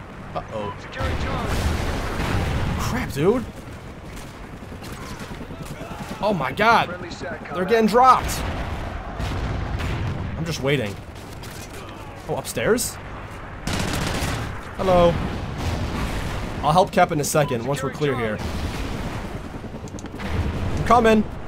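Gunfire rattles in bursts from a video game.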